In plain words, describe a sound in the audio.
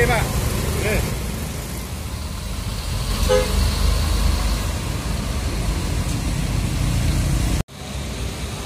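Bus engines rumble in passing street traffic.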